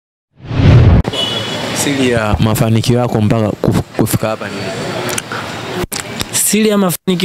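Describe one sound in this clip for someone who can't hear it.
A young man speaks into a microphone with animation, close by.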